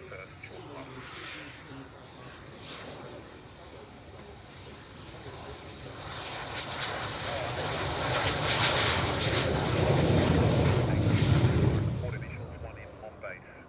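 A jet engine roars loudly, swells and passes close by.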